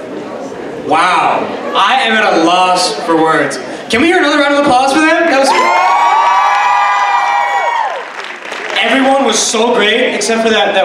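A young man sings into a microphone over loudspeakers in a large hall.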